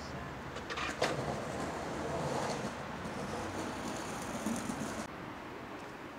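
Skateboard wheels roll along stone pavement.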